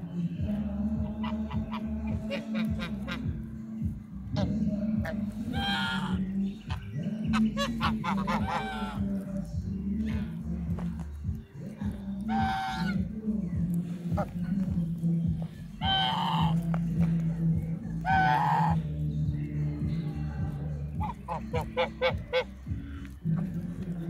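Geese cackle in quick, chattering bursts.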